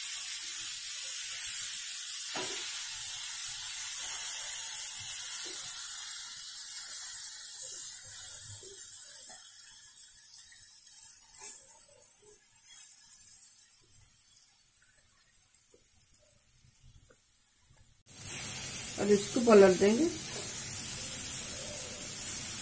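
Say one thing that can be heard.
A wooden spatula scrapes and stirs food in a frying pan.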